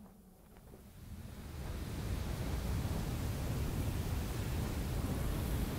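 Wind roars with blowing sand, growing louder.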